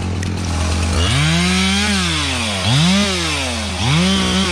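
A chainsaw revs up and down in bursts.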